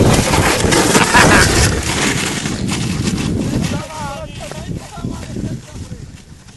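A sled scrapes and hisses over snow.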